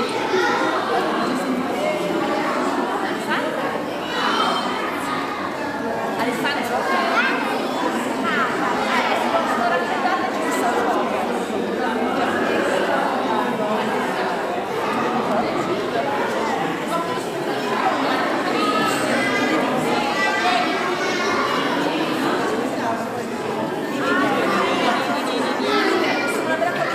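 Young children chatter excitedly all around, close by.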